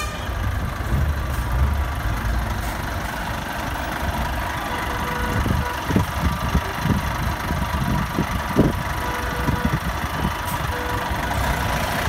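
A truck engine idles nearby with a low, steady rumble.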